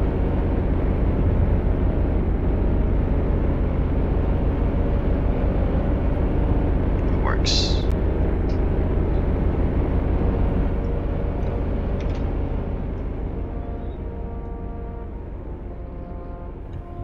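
Car engines idle with a low, steady rumble that slowly fades.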